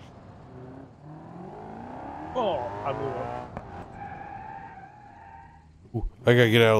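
A car engine revs and roars, rising in pitch as it speeds up.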